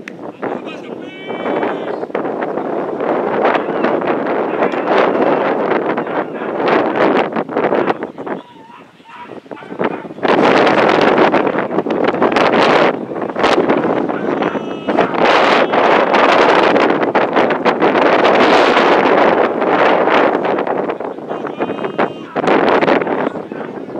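A man calls out in the distance outdoors.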